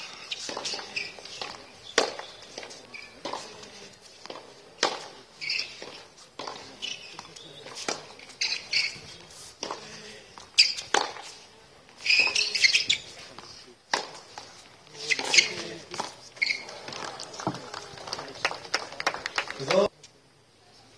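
Tennis shoes squeak and scuff on a hard court.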